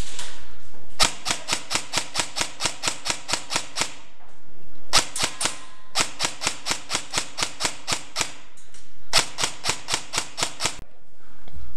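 An airsoft gun fires rapid bursts of shots close by.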